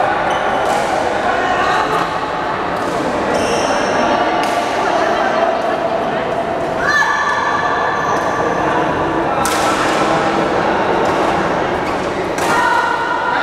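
Shuttlecocks are struck with rackets, with sharp pops.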